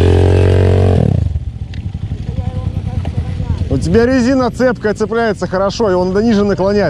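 A motorcycle engine idles with a low, steady putter.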